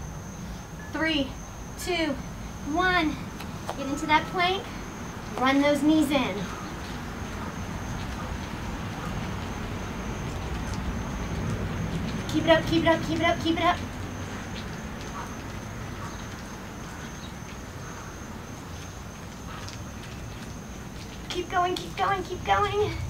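A young woman speaks with animation close by, in short bursts.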